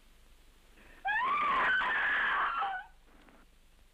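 A young woman screams loudly.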